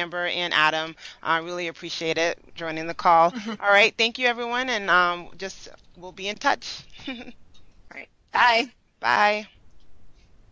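A young woman talks with animation into a headset microphone, close by.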